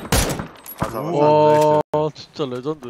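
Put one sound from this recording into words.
A young man shouts with excitement into a close microphone.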